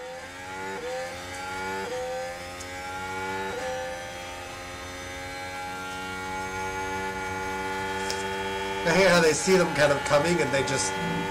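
A racing car engine whines steadily, rising in pitch between gear changes.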